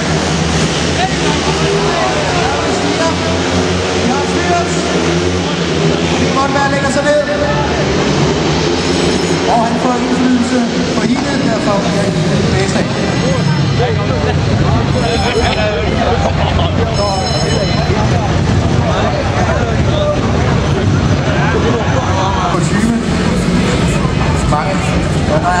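Motorcycle engines roar loudly.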